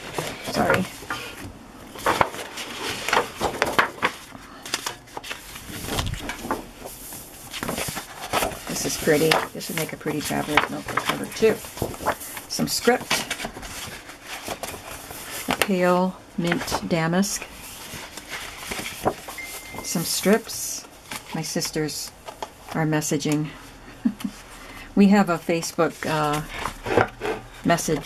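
Sheets of paper rustle and slide against each other.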